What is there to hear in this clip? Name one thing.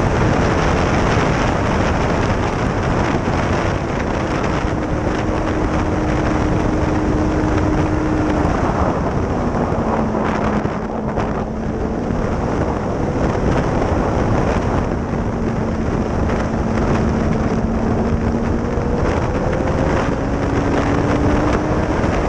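A motorcycle engine roars and changes pitch through the gears.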